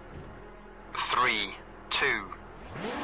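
Countdown beeps sound once a second.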